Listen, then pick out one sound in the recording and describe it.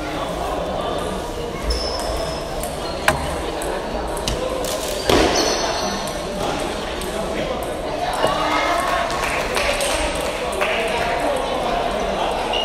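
A table tennis ball clicks back and forth between paddles and the table.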